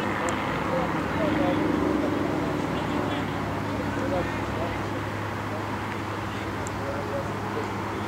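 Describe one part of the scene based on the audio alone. Men shout and call out to each other at a distance outdoors.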